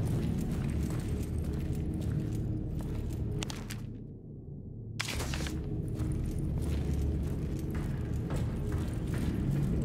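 Boots thud on metal stairs.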